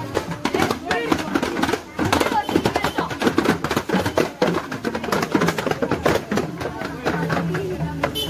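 A marching band plays drums and cymbals in a loud, rapid beat.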